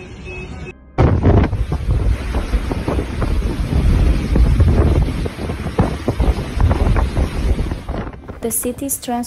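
A strong storm wind roars and gusts.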